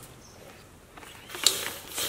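A hand pump hisses as it pushes air.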